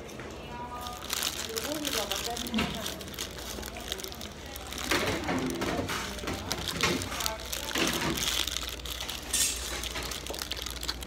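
Paper wrapping rustles and crinkles in a man's hands.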